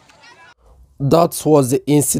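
A man speaks forcefully and loudly.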